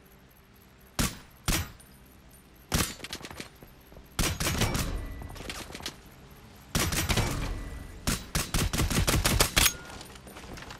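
A rifle fires loud, sharp shots with echoing booms.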